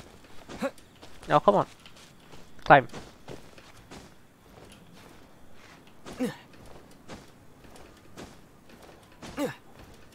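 Footsteps and scrapes sound as a figure climbs over rock.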